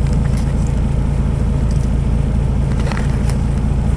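A car rolls up alongside on the road.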